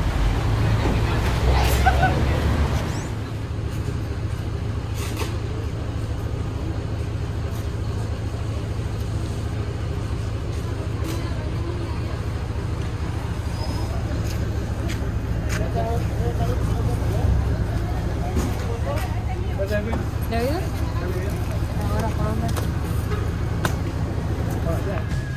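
A group of men and women talk nearby outdoors.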